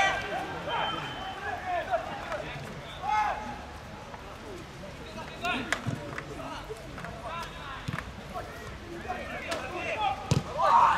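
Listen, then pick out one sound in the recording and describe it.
Men shout and call out across an open outdoor pitch.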